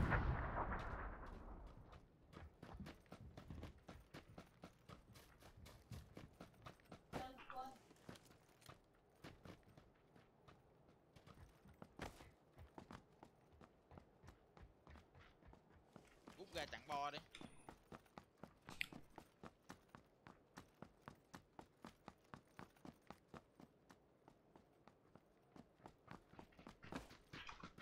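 Quick footsteps thud steadily on the ground.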